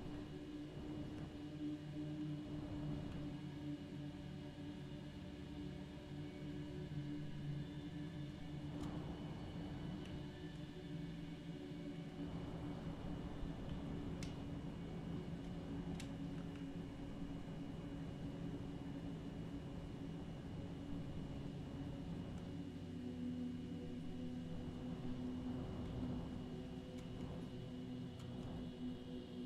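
A low engine hums steadily.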